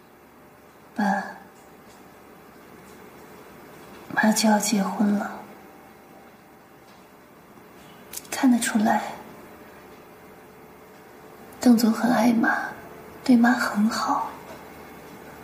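A young woman speaks softly and slowly, close by.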